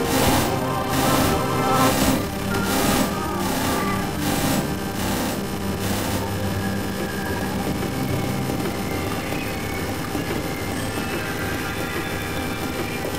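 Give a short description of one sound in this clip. Rapid game attack effects blast and crackle.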